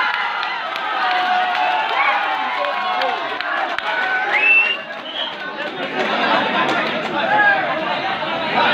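Young men shout to one another.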